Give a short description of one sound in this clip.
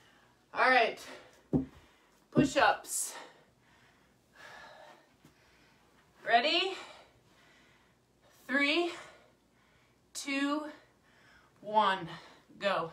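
A woman speaks close by in short, breathless bursts.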